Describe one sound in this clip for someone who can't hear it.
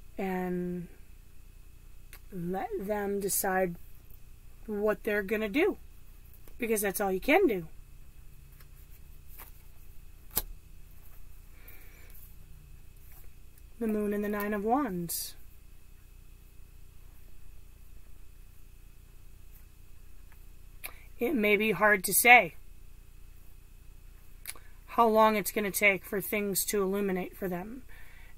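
A woman talks calmly and close by, in bursts with pauses.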